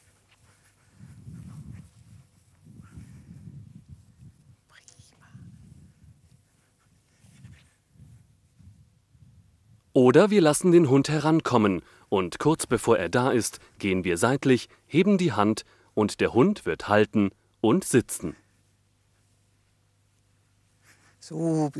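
An elderly woman talks calmly and clearly, close to a microphone.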